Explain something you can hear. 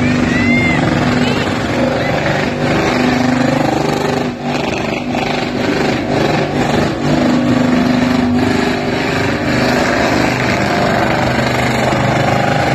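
A car engine roars and revs hard nearby.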